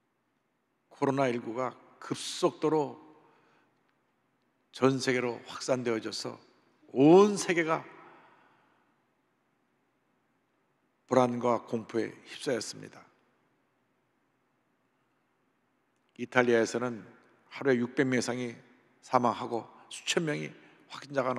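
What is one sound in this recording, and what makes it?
A middle-aged man speaks slowly and with emphasis through a microphone, in bursts with long pauses, in a large echoing hall.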